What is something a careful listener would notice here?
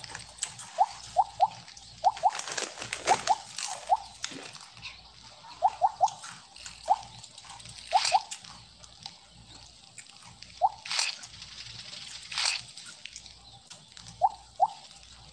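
Short bright blips sound again and again as a game's snake eats pellets.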